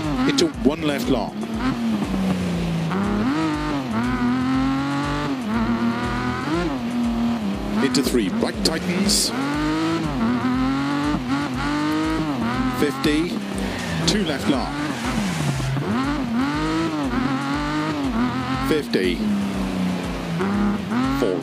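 Tyres squeal on tarmac through corners.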